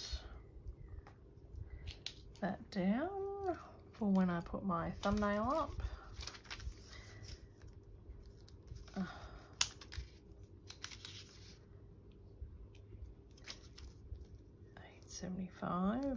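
Hands handle objects on a table with soft taps and rustles.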